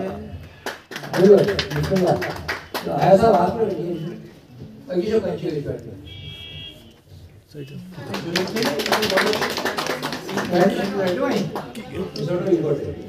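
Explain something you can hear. A man speaks with animation amid a small crowd.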